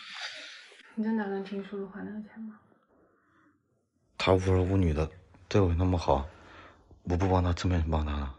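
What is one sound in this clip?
A young woman speaks softly and sadly close by.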